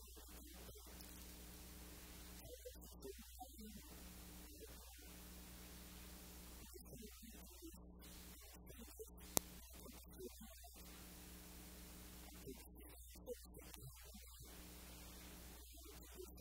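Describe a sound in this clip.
A man reads aloud calmly through a microphone in a large echoing hall.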